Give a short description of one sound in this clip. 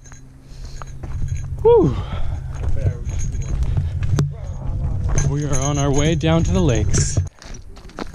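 A man talks close to a microphone, outdoors.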